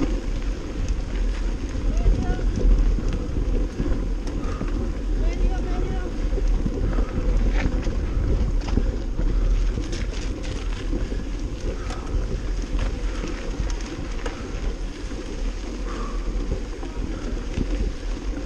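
Bicycle tyres crunch and rattle over a dirt track.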